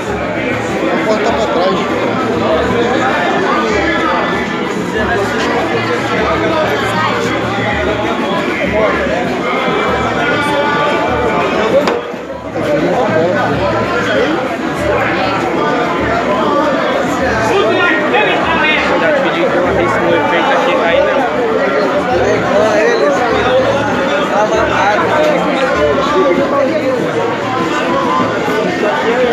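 A crowd of men and boys talks and calls out all around, close by.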